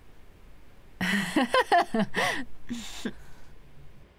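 A teenage girl speaks softly and close by.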